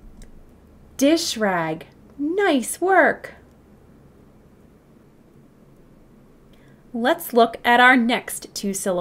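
A young woman speaks clearly and with animation into a close microphone, pausing between words.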